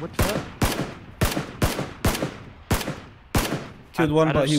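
A rifle fires sharp single shots in quick succession, each ringing out briefly.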